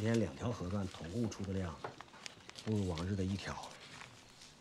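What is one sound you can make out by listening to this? A man speaks quietly and calmly nearby.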